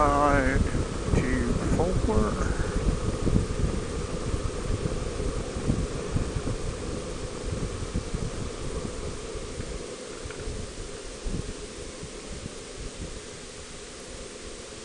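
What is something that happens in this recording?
Wind rushes loudly past a moving vehicle and slowly eases.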